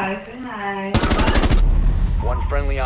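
Rapid gunfire rattles in a short burst.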